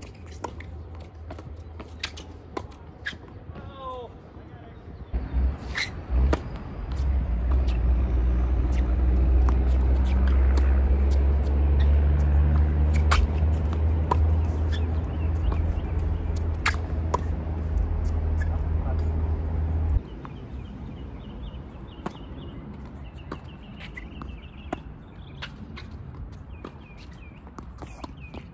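Tennis rackets strike a ball back and forth.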